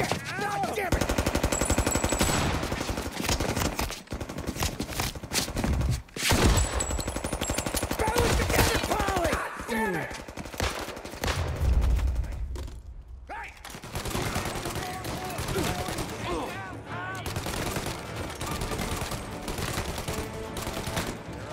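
Gunshots fire rapidly, echoing in a large hall.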